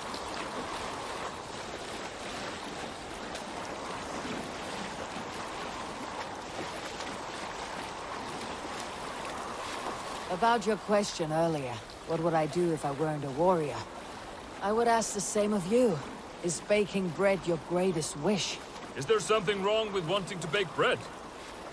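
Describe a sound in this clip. Water laps and splashes gently against a rowing boat.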